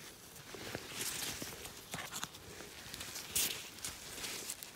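Dry leaves and moss crackle as something is pulled from the ground.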